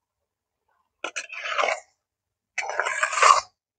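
A metal spatula scrapes and stirs macaroni in an earthenware pot.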